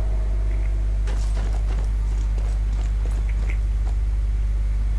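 Footsteps run over grass and stone steps.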